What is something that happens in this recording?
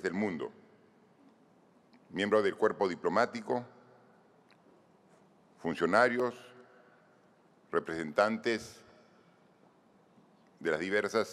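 A man speaks calmly and deliberately through a microphone in a large echoing hall, with long pauses.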